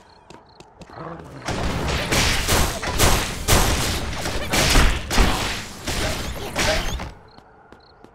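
Gunshots and blasts crackle in loud, rapid bursts.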